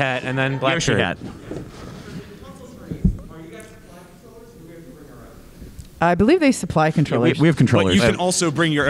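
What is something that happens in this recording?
A man speaks into a microphone over loudspeakers in a large room.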